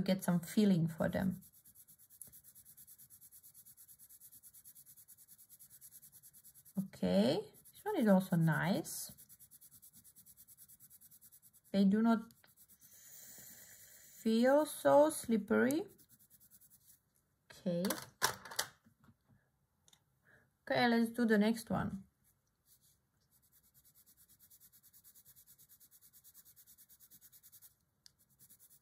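A felt-tip marker rubs softly on paper.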